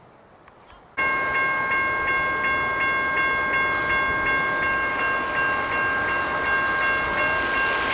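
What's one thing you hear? A train horn blares loudly and steadily.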